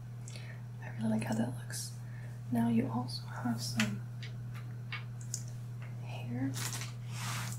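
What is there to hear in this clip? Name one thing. A young woman speaks softly, close to the microphone.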